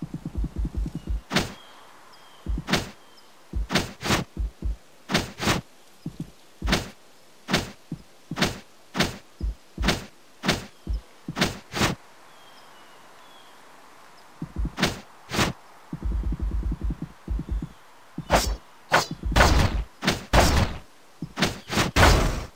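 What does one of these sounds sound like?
Short game sound effects chirp each time a small character jumps.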